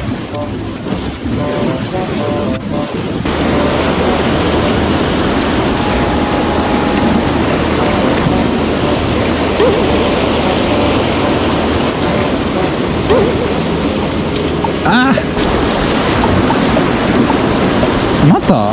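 A fishing reel whirs as its handle is wound.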